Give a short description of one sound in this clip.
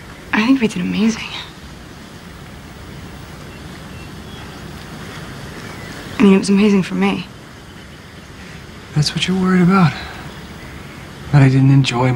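A young man speaks softly and calmly, close by.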